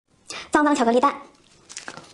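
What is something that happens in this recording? A young woman makes a short high-pitched sound close to a microphone.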